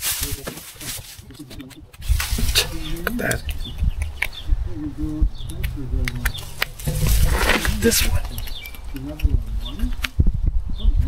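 Branches rustle and scrape as they are handled.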